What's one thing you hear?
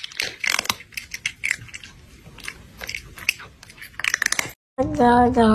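A cat crunches on snacks.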